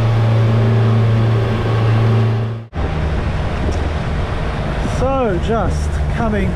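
Water rushes and churns in a boat's wake.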